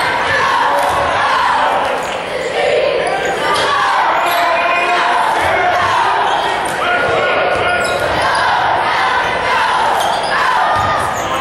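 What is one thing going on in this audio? A crowd cheers and shouts loudly in a large echoing gym.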